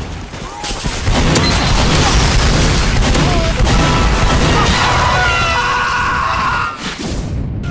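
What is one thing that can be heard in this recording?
A flamethrower roars loudly.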